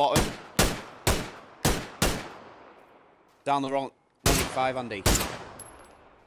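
A scoped rifle fires several sharp shots.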